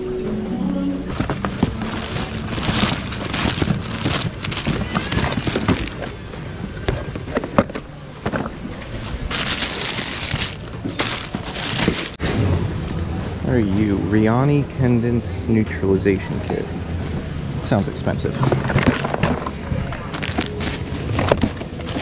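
Plastic packaging rustles and crinkles as hands rummage through it.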